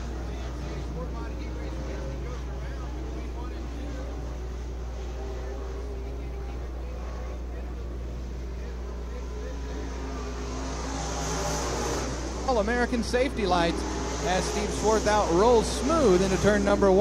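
Race car engines roar as the cars speed around a dirt track.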